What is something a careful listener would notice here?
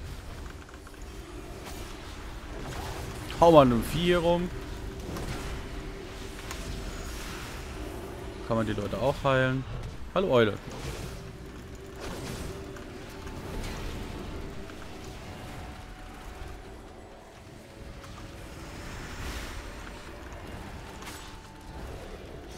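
Game spell effects whoosh and ring out.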